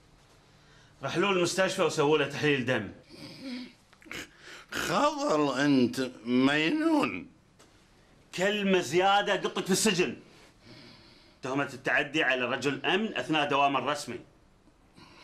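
A middle-aged man speaks loudly and with animation close by.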